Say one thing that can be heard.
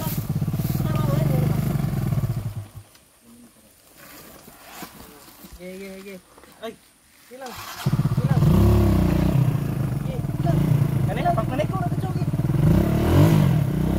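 A dirt bike engine revs and labours close by.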